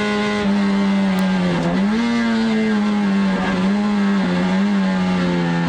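The car's body and roll cage rattle over the track.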